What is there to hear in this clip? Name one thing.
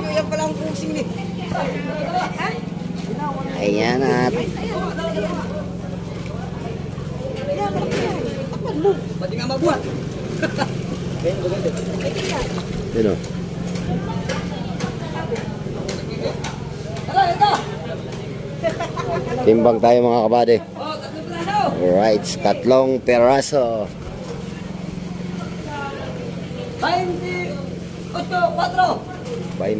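Men and women talk and call out nearby in a busy crowd.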